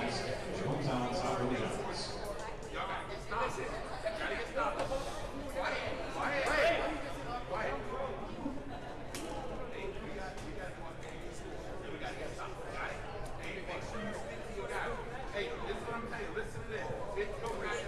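A crowd of people chatter in a large echoing gym.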